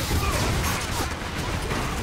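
An electric beam crackles and hums.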